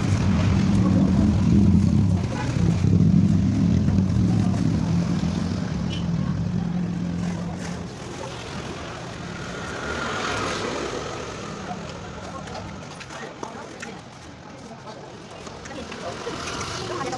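A trowel scrapes and smooths wet cement.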